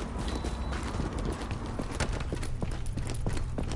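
Heavy footsteps thud up stone steps and through a doorway.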